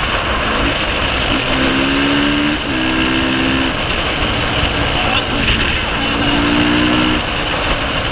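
A motorcycle engine revs and changes pitch close by as the bike rides fast.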